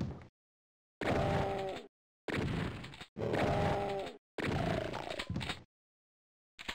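A pistol fires repeatedly in a video game.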